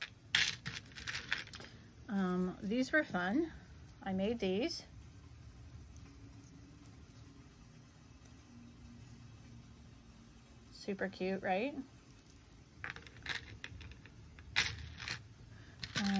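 Small metal charms clink and rattle in a plastic box.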